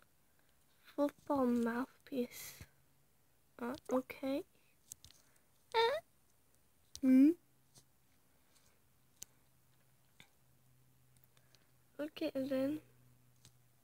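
A woman speaks with animation in short bursts, close to a phone microphone.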